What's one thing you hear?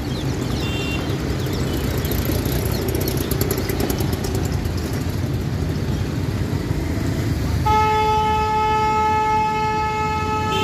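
Car engines hum and tyres roll past close by.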